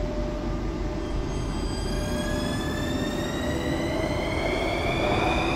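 A subway train's motors whine, rising in pitch as it pulls away.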